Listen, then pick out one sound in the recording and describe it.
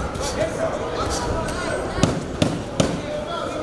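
Boxing gloves thump against pads and headgear.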